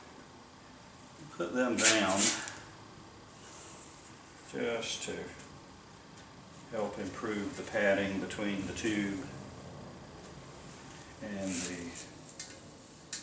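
A metal hubcap clinks as hands handle it.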